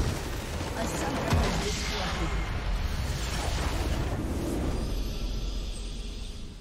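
A base structure explodes with a deep rumbling blast.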